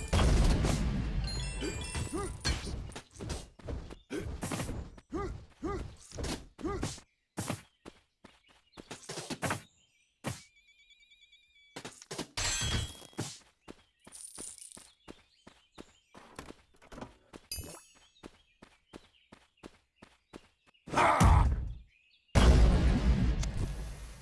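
Sword swings whoosh and strike again and again.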